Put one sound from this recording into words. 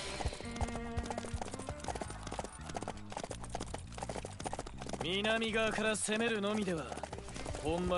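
A horse gallops, hooves thudding on dirt.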